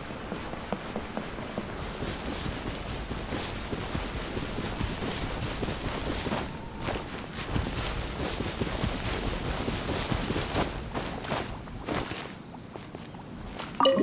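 Footsteps swish through tall grass at a run.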